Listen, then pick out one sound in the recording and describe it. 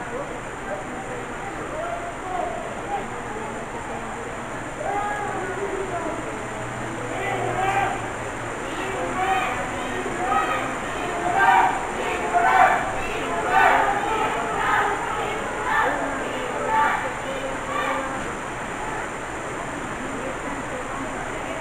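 A crowd murmurs and chatters in an echoing hall.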